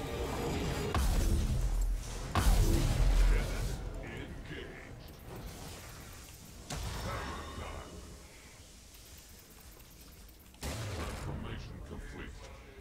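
Game sound effects whoosh and burst in sudden bursts.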